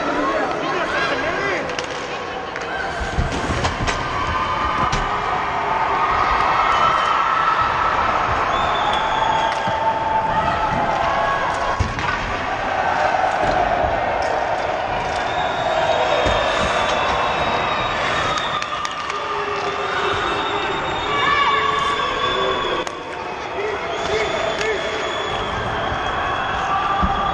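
Hockey sticks clack against the puck and ice now and then.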